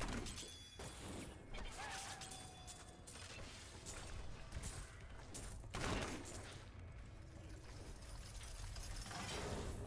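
Magic blasts and blows crash and whoosh in a fight.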